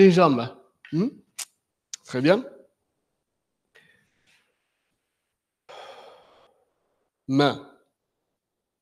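An elderly man calls out short commands loudly.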